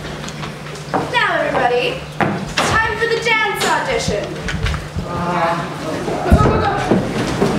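A young woman sings solo on stage.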